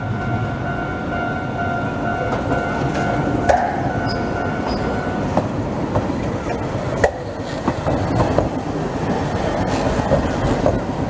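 A tram rumbles along the rails, drawing closer.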